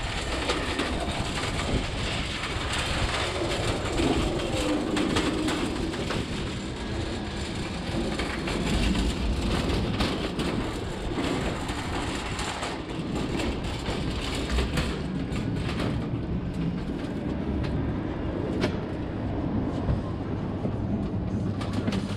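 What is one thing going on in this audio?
A shopping trolley rattles as its wheels roll over concrete.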